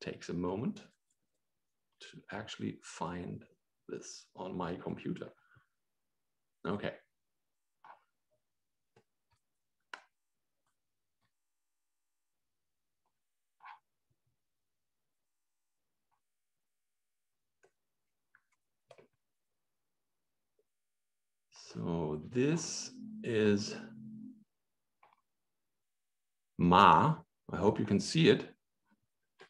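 A man speaks calmly over an online call, pausing between phrases.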